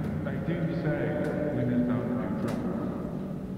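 A second man speaks calmly, close by.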